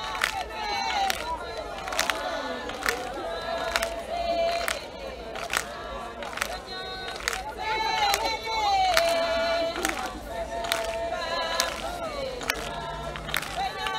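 A group of women sing together in chorus.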